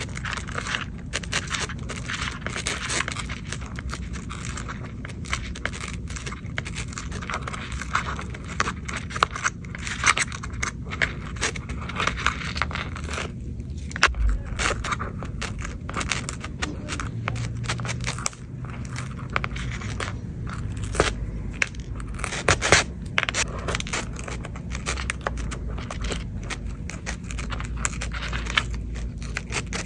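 A small tool scrapes and crackles against sticky adhesive, close up.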